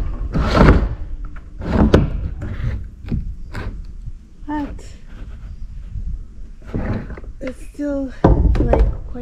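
A plastic lid scrapes and knocks against a metal surface.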